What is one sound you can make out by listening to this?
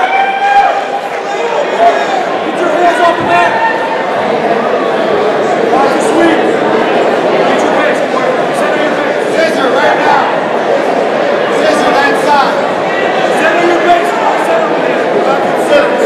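Men call out instructions loudly.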